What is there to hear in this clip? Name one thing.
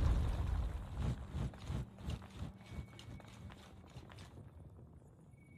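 Footsteps thud on stone in a large echoing space.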